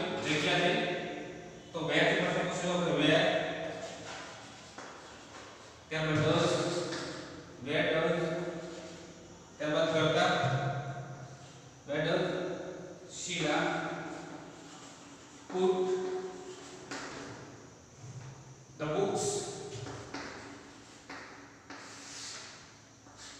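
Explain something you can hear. A young man speaks loudly and slowly, as if teaching, in an echoing room.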